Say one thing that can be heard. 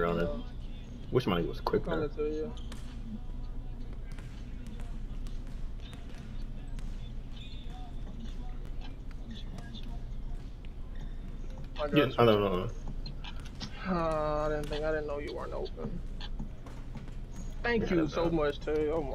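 A basketball bounces on a court.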